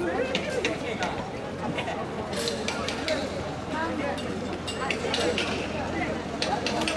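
Metal fittings on a swaying carried shrine clink and rattle.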